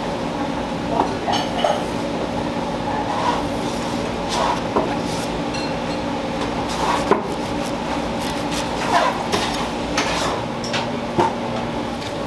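A knife taps against a wooden board.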